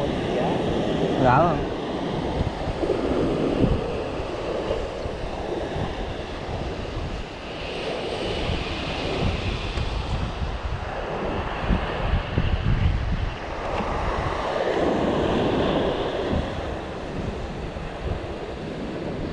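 Waves break and wash onto the shore nearby.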